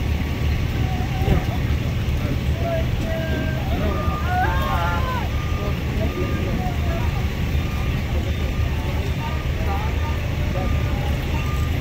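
A stretcher rattles as it is pushed into a vehicle.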